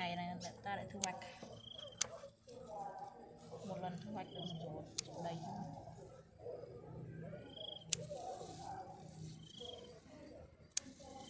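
Scissors snip through plant stems with sharp clicks.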